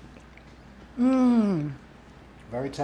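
A woman hums with delight close by.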